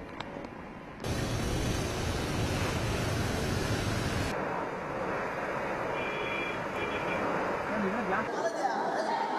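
Rain pours down outdoors.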